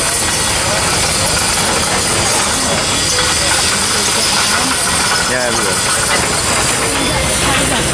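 An excavator engine rumbles at a distance.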